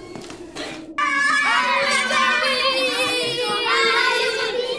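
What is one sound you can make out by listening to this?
Young children shout and laugh excitedly nearby.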